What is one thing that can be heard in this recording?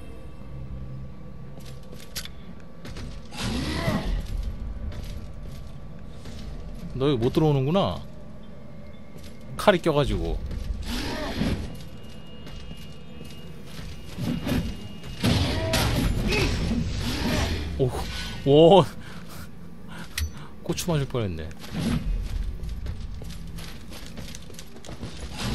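Heavy armored footsteps thud and clank on stone.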